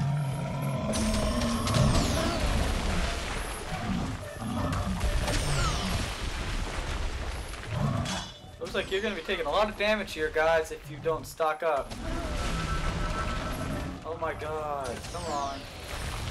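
Rocks crash and shatter.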